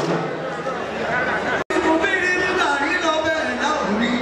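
An elderly man sings loudly through a microphone.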